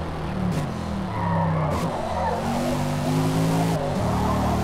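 Tyres squeal on asphalt through a turn.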